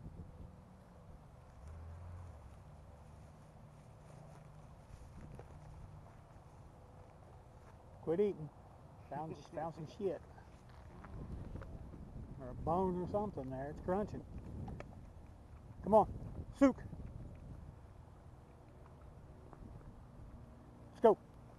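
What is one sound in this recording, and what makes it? A dog sniffs and snuffles through grass close by.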